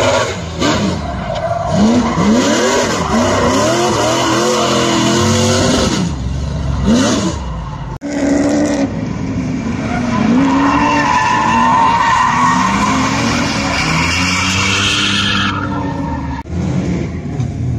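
A car engine revs hard up and down as the car drifts.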